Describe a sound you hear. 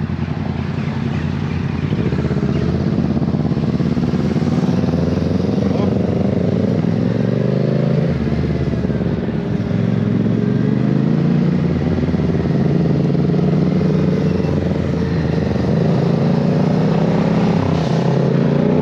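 A motorcycle engine hums close by, rising and falling in pitch as it speeds up and slows down.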